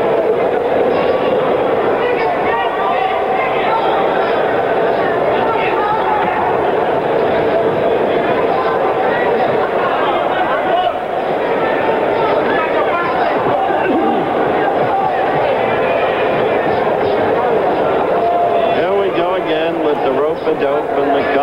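A large crowd roars and shouts throughout.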